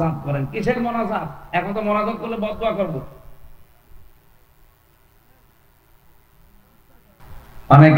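A middle-aged man preaches with animation through a loudspeaker microphone.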